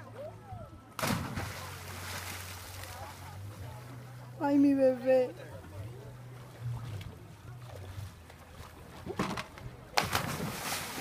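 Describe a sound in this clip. A person plunges into the sea with a loud splash.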